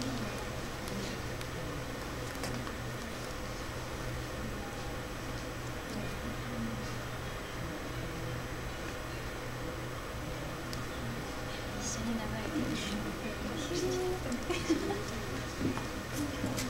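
Visitors murmur quietly in a large echoing hall.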